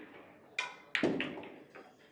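A pool cue strikes a pool ball with a sharp click.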